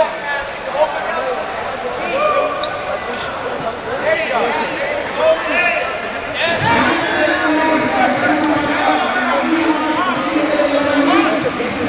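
A crowd of spectators shouts and cheers across a large echoing hall.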